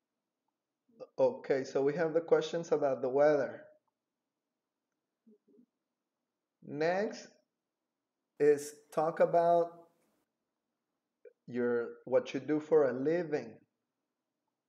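A young man speaks calmly and clearly into a close microphone, in short phrases with pauses.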